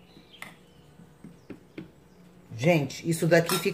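A metal spoon scrapes and taps against a pan.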